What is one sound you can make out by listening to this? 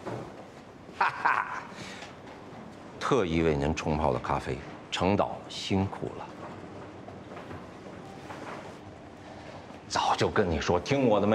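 A middle-aged man speaks in a friendly, persuasive way up close.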